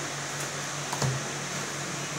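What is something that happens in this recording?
A cardboard box knocks lightly as it is set down on a glass counter.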